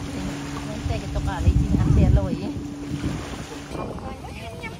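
Small waves wash onto the sand.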